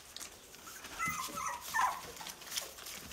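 A puppy whimpers briefly.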